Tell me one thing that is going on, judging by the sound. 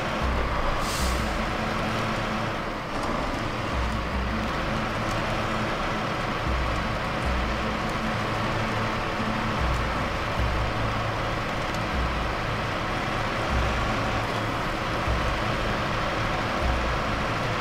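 A heavy truck engine rumbles and labours steadily.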